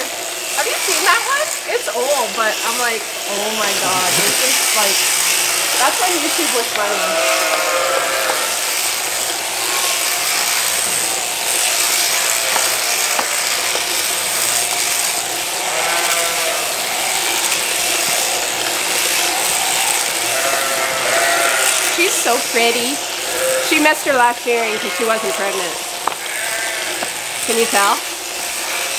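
Electric clippers buzz steadily while shearing a sheep's wool.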